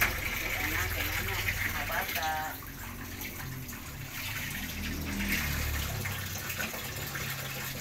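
A pan of broth simmers and bubbles softly.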